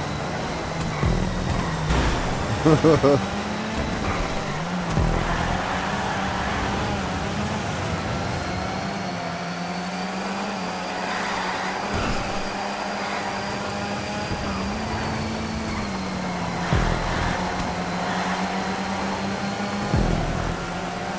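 A racing car engine roars steadily, rising and falling as it shifts gears.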